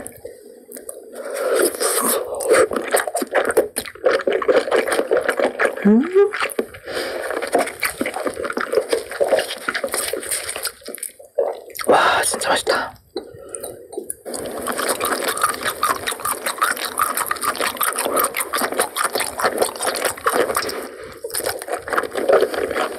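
A young woman chews food wetly and loudly, close to a microphone.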